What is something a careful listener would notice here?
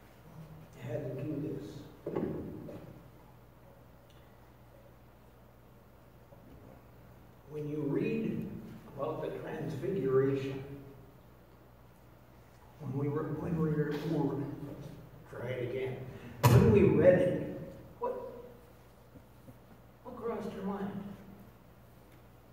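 An elderly man speaks calmly through a microphone, with pauses between phrases.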